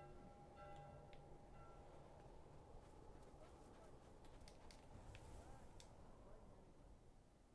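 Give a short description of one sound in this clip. Wind howls in a snowstorm.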